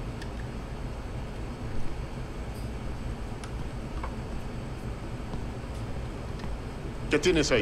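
Small glass vials clink softly against each other.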